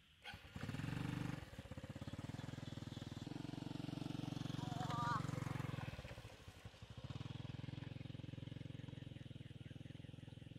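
A small motorcycle pulls away and rides off.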